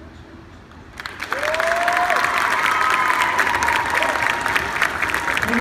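A crowd cheers and claps loudly.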